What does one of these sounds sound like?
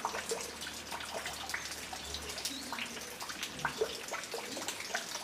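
Small birds chirp and call in short bursts nearby.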